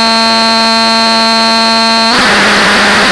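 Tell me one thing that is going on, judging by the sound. A steady electronic drone buzzes and cuts off abruptly.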